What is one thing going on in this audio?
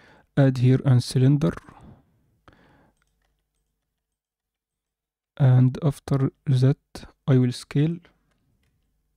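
A young man speaks calmly and closely into a microphone, in short bursts with pauses.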